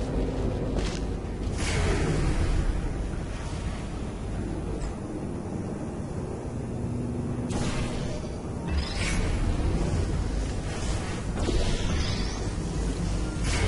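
A laser beam hums and crackles with sparks.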